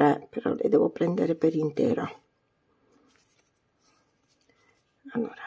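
A crochet hook softly pulls yarn through stitches.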